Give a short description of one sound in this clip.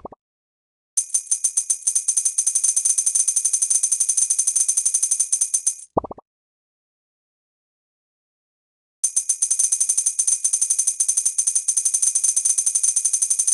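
A rapid stream of high ticking coin sounds plays.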